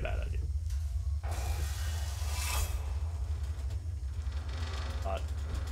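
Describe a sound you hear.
A flamethrower roars in short bursts.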